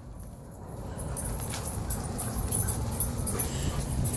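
Dogs' paws thud and scuffle across dry grass.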